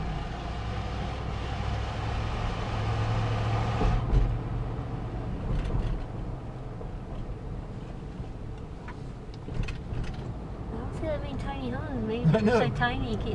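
A car engine hums and tyres rumble on the road, echoing inside a tunnel.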